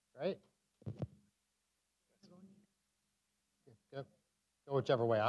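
A man speaks through a microphone in a large room, pausing often.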